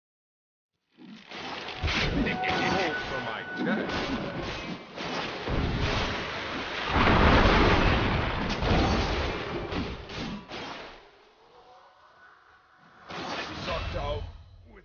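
Magic blasts and clashing weapons crackle and thud in a busy fight.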